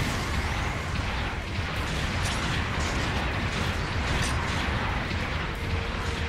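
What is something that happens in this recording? A low mechanical rumble drones throughout.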